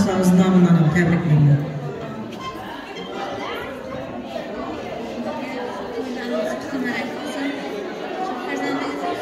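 A group of women chatter in an echoing hall.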